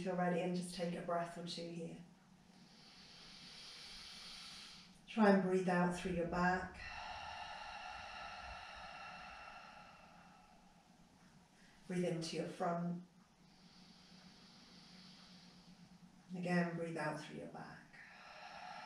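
A woman speaks calmly and softly nearby, in short phrases with pauses.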